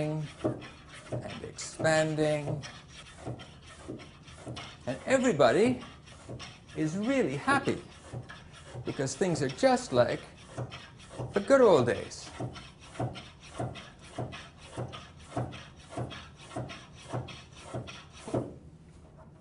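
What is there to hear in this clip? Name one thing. A hand pump squeaks and hisses in quick, even strokes.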